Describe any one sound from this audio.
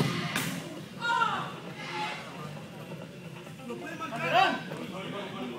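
Young men shout across a large echoing indoor hall.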